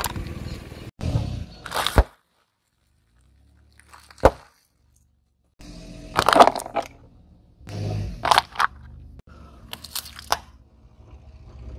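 A car tyre rolls over packets and crushes them with crackling crunches.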